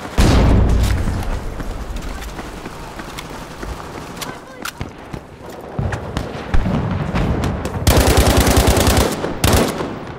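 Gunshots crack repeatedly, some in rapid bursts.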